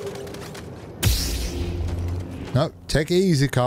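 A lightsaber hums and crackles as it ignites.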